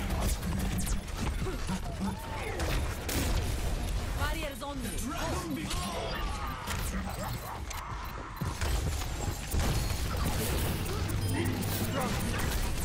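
A heavy gun fires rapid bursts of glowing shots.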